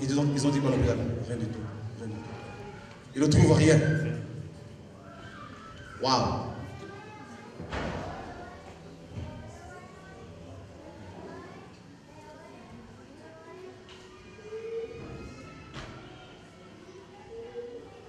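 A man speaks loudly and forcefully into a microphone, heard through loudspeakers in an echoing hall.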